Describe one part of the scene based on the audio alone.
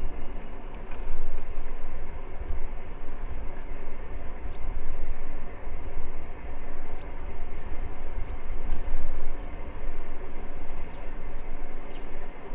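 Bicycle tyres hum on a smooth path.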